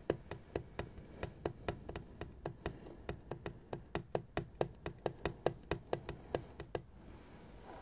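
Fingernails tap rapidly on a tin lid, close up.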